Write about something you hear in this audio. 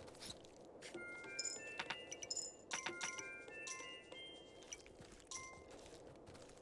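Coins jingle with bright chiming notes.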